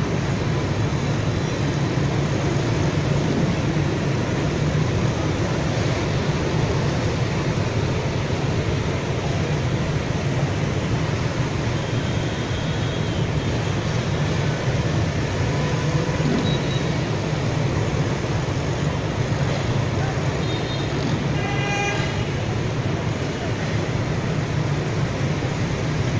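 Motorbike engines hum and drone steadily as heavy traffic streams past below.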